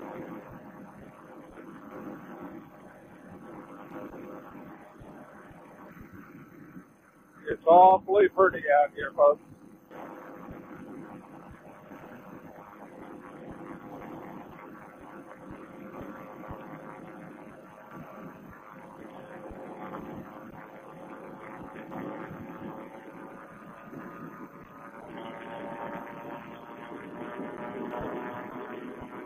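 A motor engine drones steadily close by.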